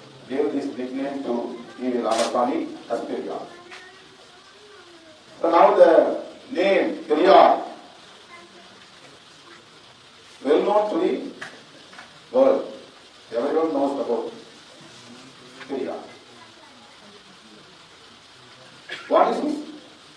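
A middle-aged man speaks forcefully into a microphone, in bursts with pauses.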